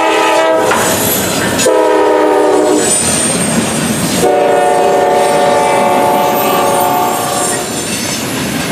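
A train horn blasts loudly several times.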